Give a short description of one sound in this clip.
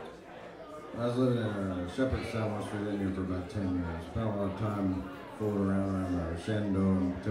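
A fiddle plays a tune.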